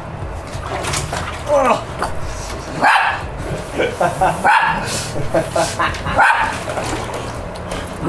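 A young man grunts and strains with effort.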